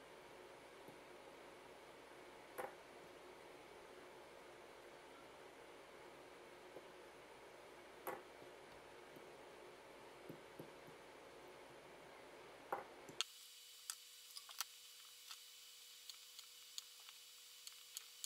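Small metal parts click and tap lightly as they are handled.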